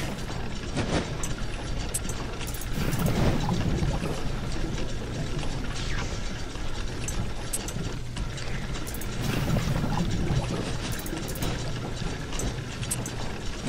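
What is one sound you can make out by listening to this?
Metal tiles clack into place now and then.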